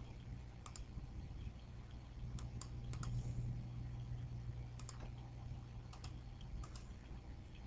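A computer mouse clicks in quick pairs.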